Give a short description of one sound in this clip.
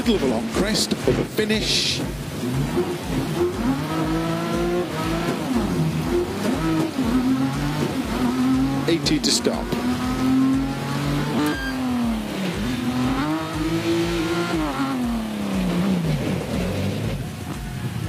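A racing car engine roars, revving up and down through the gears.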